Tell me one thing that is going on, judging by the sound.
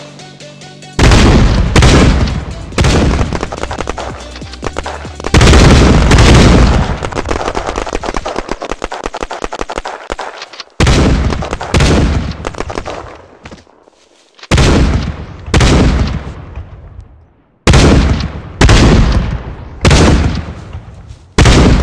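Shotgun blasts boom loudly one after another, each trailing off.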